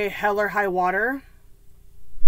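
A woman speaks close to a microphone in a drawn-out, sing-song way.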